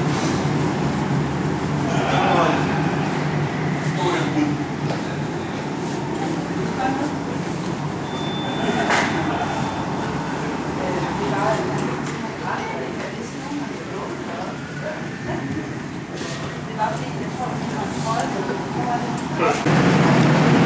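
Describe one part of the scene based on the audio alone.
Adult men talk with each other nearby.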